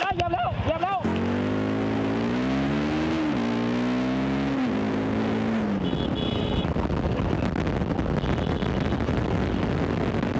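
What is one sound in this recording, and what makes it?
A motorcycle engine hums and rises and falls in pitch.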